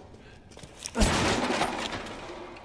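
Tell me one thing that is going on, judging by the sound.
A wooden crate smashes and splinters.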